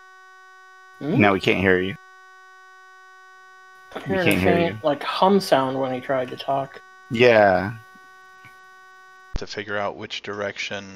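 Men talk with animation over an online call.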